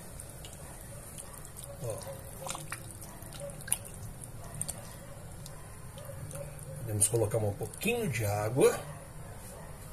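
A spatula scrapes and stirs a stew in a metal pot.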